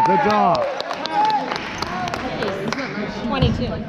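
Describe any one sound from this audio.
A basketball bounces on the floor with echoing thuds.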